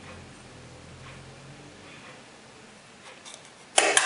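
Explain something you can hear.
A hinged metal lid clicks open and shut.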